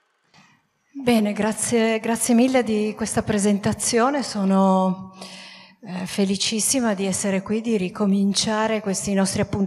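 A woman speaks calmly into a microphone, heard through a loudspeaker in a room.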